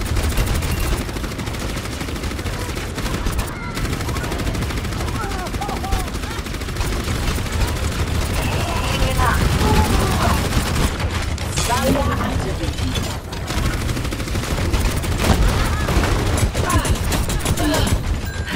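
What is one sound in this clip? A video game gun fires rapid energy shots.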